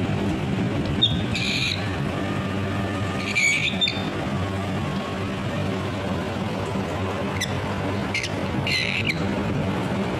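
A cockatiel gives short, shrill screeches close by.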